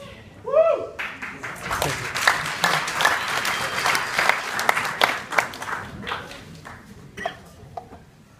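An audience applauds loudly in a large hall, then the clapping dies away.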